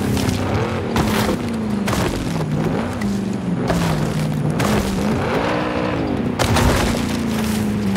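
Branches and small trees crack and crash against a car.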